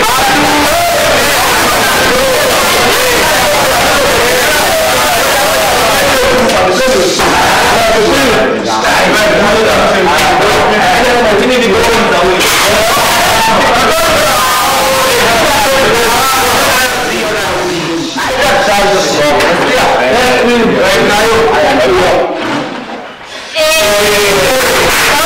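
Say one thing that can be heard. Several young men talk and discuss with animation, close by in an echoing room.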